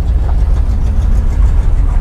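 A car drives off slowly.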